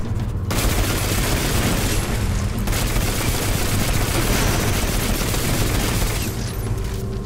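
A rapid-fire energy rifle shoots in loud bursts.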